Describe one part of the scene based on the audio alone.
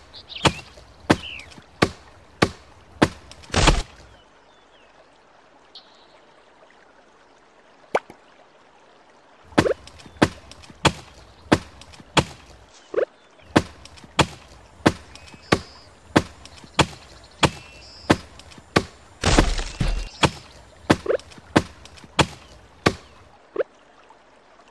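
An axe chops wood in steady, repeated blows.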